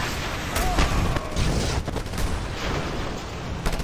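Burning debris crackles as it falls.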